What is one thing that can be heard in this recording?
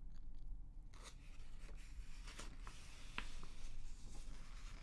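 A magazine page rustles as it is turned.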